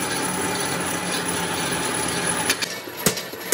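A machine motor whirs loudly.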